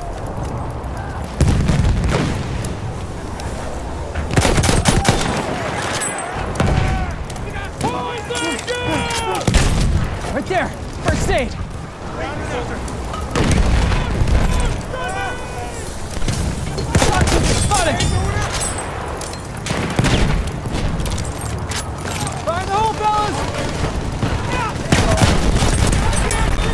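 Heavy gunfire and explosions boom loudly throughout.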